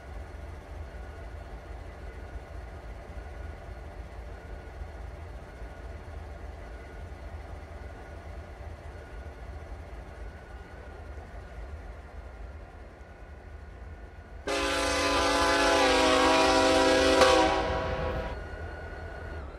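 A diesel locomotive engine idles with a low steady rumble.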